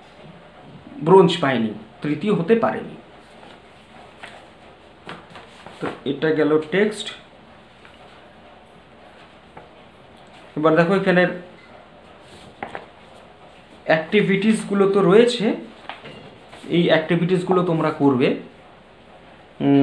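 A man speaks calmly in short phrases close to the microphone, with pauses between them.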